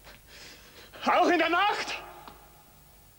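A woman cries out briefly.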